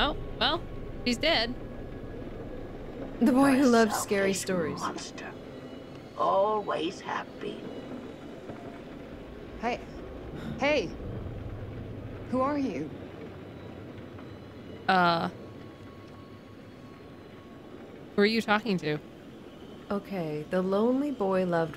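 A middle-aged woman talks with animation into a nearby microphone.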